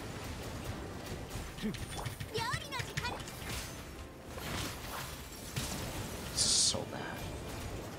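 Magical blasts and whooshes burst in a video game.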